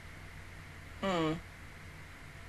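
A young woman briefly makes a short, falling vocal sound close to a microphone.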